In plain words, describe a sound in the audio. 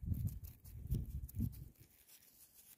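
Fingers rub soil off a coin close by.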